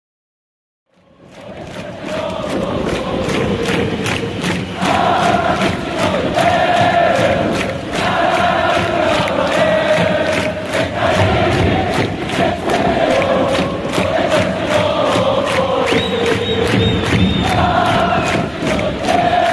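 A large crowd of fans chants and sings loudly in unison outdoors.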